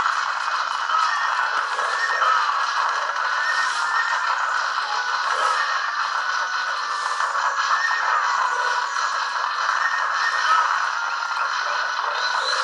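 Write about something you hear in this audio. Thin battle noise with clashing weapons plays from small speakers.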